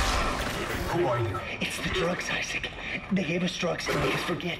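A young man speaks calmly over a radio call.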